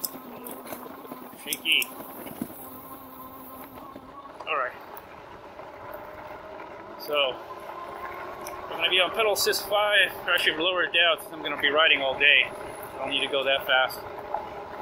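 An electric bike motor hums steadily.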